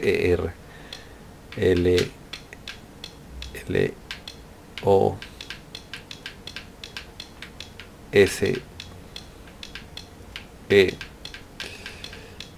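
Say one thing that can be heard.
Lock dials click as they turn.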